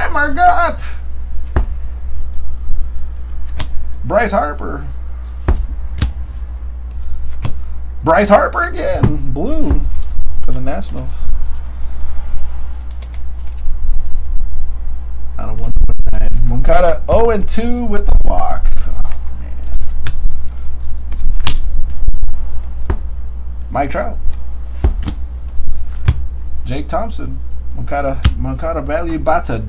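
Trading cards shuffle and flick between hands close by.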